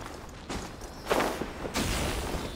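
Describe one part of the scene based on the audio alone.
A crackling electric burst bursts out.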